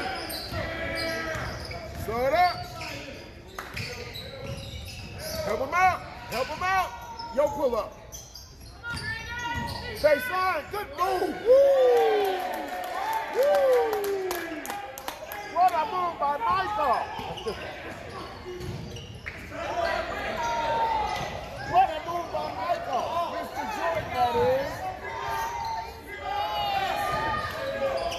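Sneakers squeak sharply on a gym floor, echoing in a large hall.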